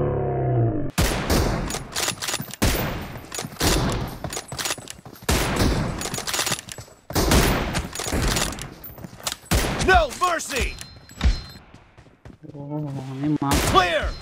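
Weapons strike and clash in quick, repeated blows.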